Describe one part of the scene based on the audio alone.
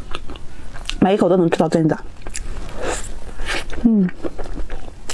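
A young woman hums briefly with her mouth closed.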